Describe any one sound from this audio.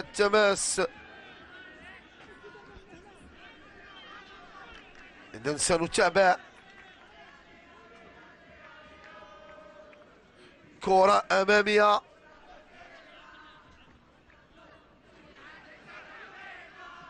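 A crowd chants and cheers in a stadium.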